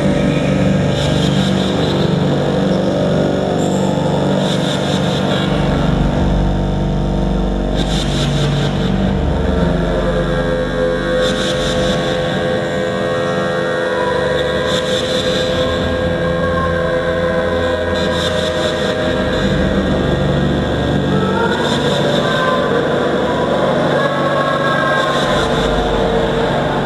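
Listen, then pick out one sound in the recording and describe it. Live electronic music plays loudly through a sound system.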